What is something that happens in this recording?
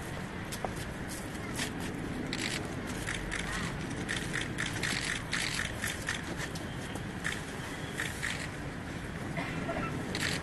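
Flower wreaths rustle as they are set down.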